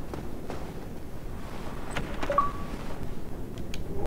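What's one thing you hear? A heavy wooden chest creaks open.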